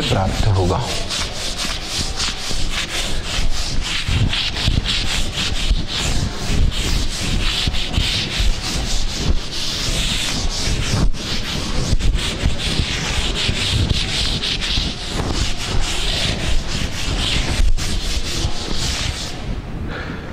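A duster rubs and scrubs across a chalkboard.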